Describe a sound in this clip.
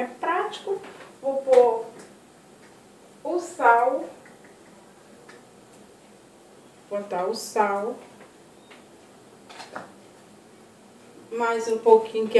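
A middle-aged woman speaks close by in short bursts with pauses.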